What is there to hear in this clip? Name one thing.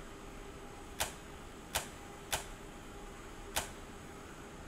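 Switches click sharply one after another.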